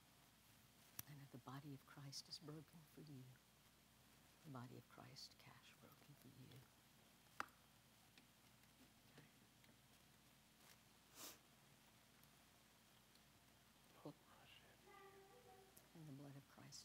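A man speaks softly into a microphone.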